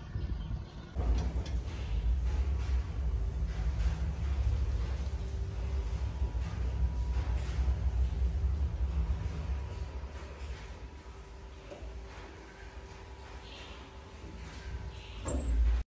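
An elevator hums and rumbles as it moves.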